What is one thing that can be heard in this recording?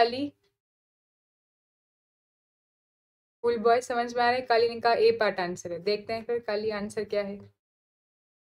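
A young woman speaks calmly into a close microphone.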